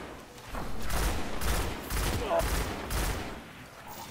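Rapid gunfire crackles and booms close by.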